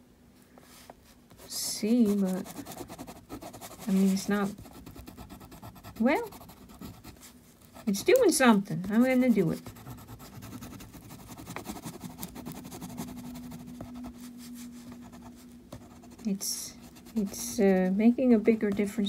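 A crayon scratches softly across paper.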